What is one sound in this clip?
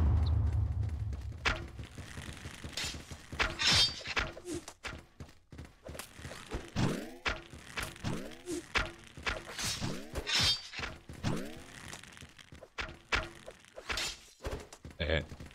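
Video game swords whoosh and clang in quick bursts.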